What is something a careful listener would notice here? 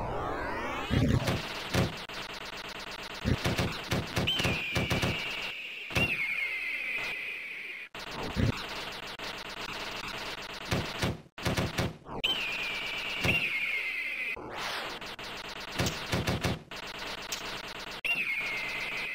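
Explosions burst in an arcade game.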